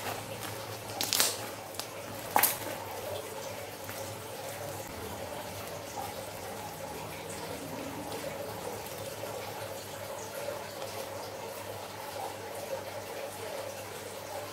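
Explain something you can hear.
Sticky slime squelches and crackles as hands stretch and squeeze it.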